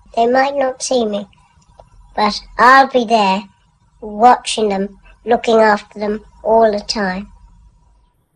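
A young boy talks calmly and close by.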